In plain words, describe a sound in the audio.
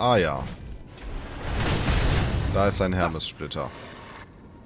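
A blade swishes through the air with a heavy whoosh.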